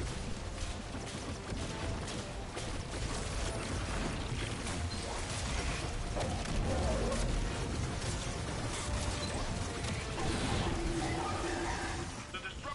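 Rapid gunfire blasts in quick bursts.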